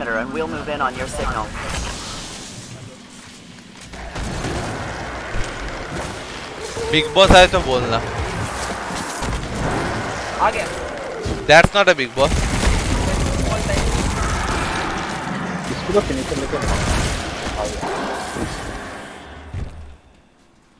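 Gunfire from a game rattles in bursts.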